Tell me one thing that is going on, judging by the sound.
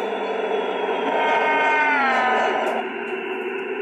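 Train brakes screech as the train slows sharply.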